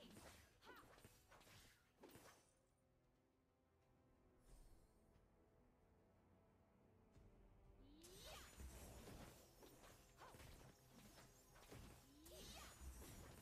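Magic attacks whoosh and hit in a video game.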